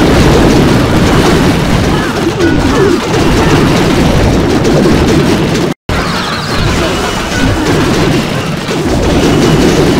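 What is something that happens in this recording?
Explosions boom and crackle in a video game battle.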